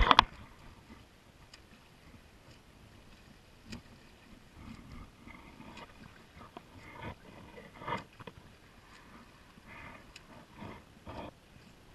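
A swimmer splashes in the water nearby.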